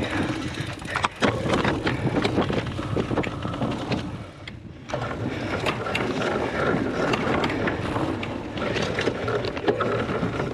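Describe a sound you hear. Bicycle tyres rattle and bump over rough muddy ground.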